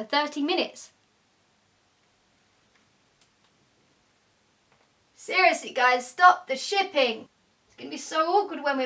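A young woman speaks cheerfully and close to the microphone.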